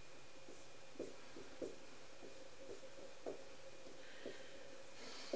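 A marker taps and squeaks on a whiteboard.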